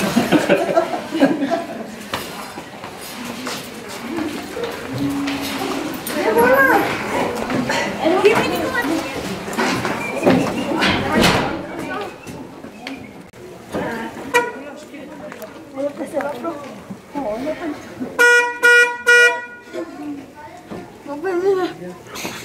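Several women and men chatter nearby.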